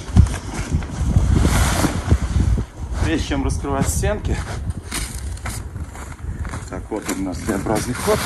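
Snow crunches underfoot.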